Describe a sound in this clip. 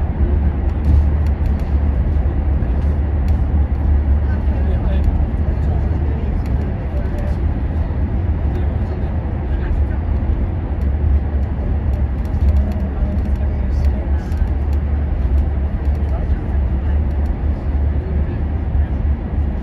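A bus engine rumbles low and steady inside a tunnel.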